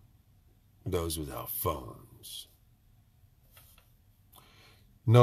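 An older man speaks calmly and close up.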